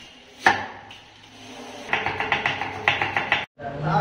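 A knife taps on a wooden chopping board.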